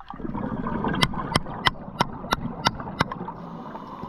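A hammer taps sharply on rock underwater.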